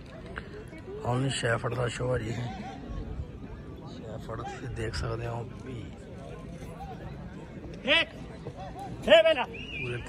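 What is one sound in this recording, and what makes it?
Men and women talk and call out nearby outdoors.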